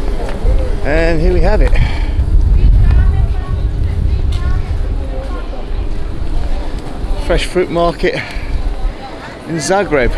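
Men and women chatter in passing outdoors.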